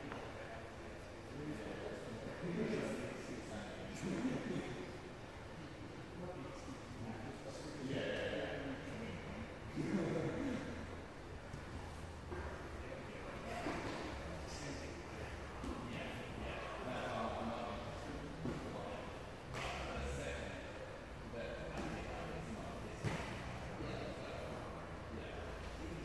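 Bodies shuffle and thump on mats in a large echoing hall.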